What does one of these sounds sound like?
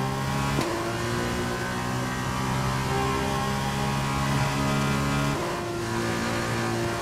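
A racing car engine roars at high revs, with sudden drops in pitch at each gear change.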